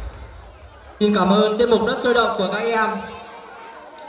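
Teenage girls laugh and chatter close by.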